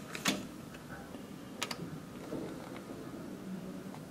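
A key card slides into a wall slot.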